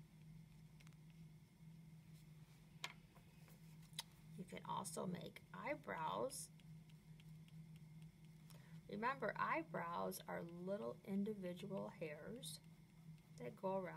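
A crayon scratches softly across paper.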